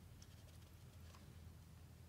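Water pours from a cup into shallow water.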